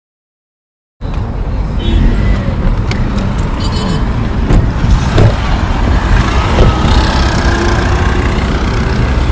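Traffic rumbles by outdoors.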